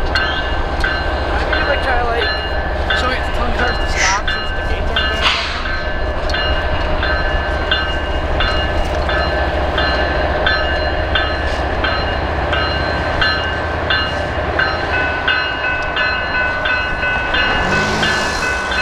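A freight train rumbles as it approaches along the tracks.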